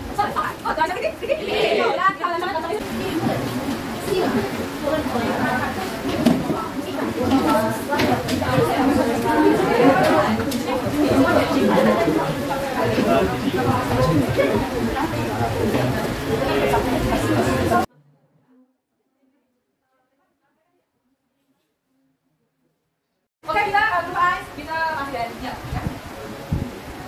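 A woman speaks to a class.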